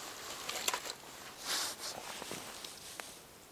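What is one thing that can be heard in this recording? Dry twigs rustle and crackle as a hand breaks them.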